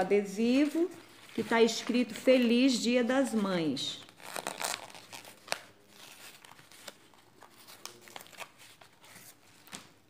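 A sheet of paper rustles and crinkles in hands.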